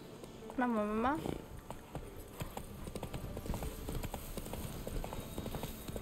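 A horse's hooves thud along a dirt path.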